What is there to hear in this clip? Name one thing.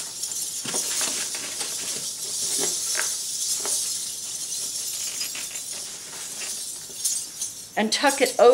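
Small metal coins jingle and clink as a coin belt is tied and handled.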